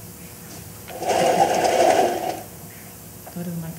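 A curtain slides open with a rustle.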